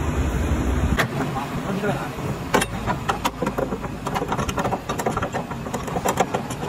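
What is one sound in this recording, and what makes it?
Metal clicks and clanks sharply, again and again.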